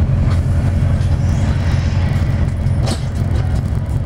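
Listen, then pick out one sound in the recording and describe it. A truck rushes past close by.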